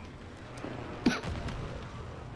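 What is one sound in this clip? A grenade explodes with a sharp bang.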